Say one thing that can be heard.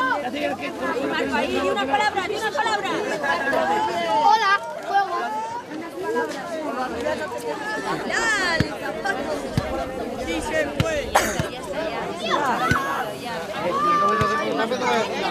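Children chatter and shout excitedly all around, outdoors.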